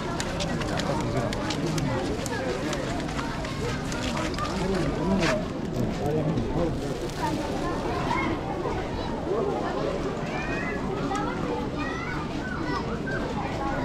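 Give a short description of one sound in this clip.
A crowd of men and children chatters all around outdoors.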